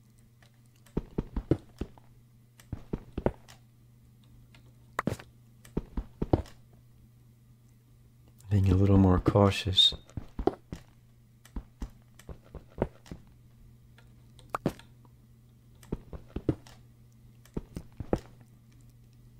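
A pickaxe chips at stone in quick, repeated taps.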